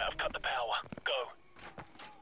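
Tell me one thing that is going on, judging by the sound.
A man speaks in a low, hushed voice close by.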